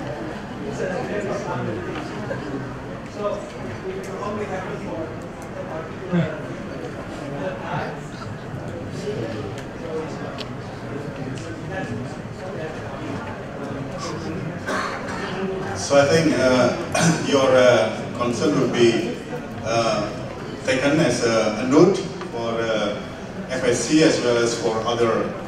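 A young man speaks into a microphone in a room with a slight echo.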